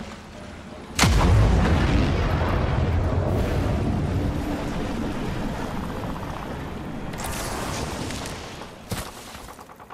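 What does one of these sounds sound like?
Wind rushes loudly past while gliding through the air, then fades.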